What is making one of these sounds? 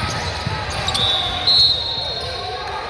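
A whistle blows shrilly in an echoing gym.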